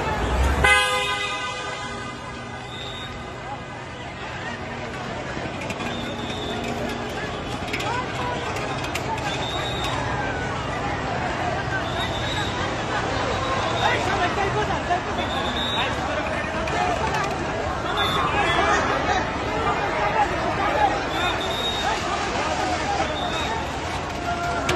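A crowd of men shout and clamour outdoors.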